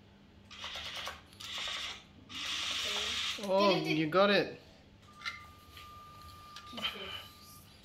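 A small toy robot's motors whir as it drives.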